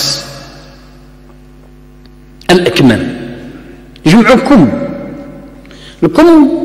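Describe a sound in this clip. An elderly man speaks slowly and earnestly into a microphone, in short phrases with pauses, in an echoing hall.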